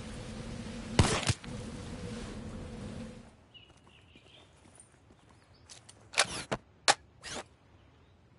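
Gunshots crack in short, sharp bursts.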